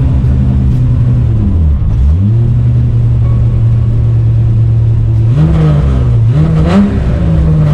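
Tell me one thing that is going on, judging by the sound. A vehicle's engine rumbles loudly from inside the cab, revving up and down as it drives slowly.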